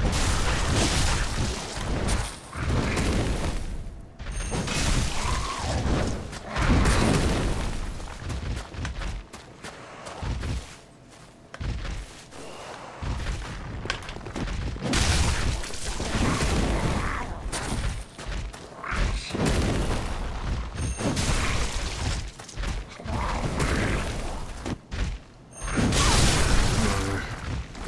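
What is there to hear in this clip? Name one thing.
Blades slash and thud against monsters.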